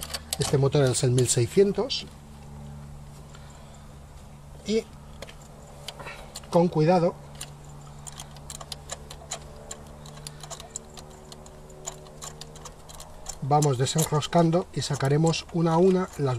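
A metal tool clicks and ticks against an engine bolt.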